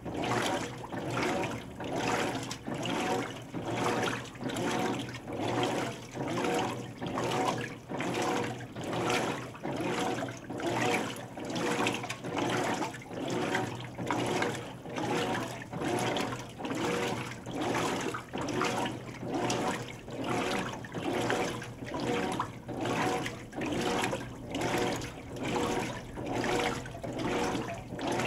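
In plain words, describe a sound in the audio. A washing machine motor hums steadily.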